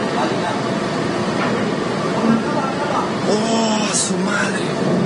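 Water churns and hisses along the side of a moving ship, heard from a distance.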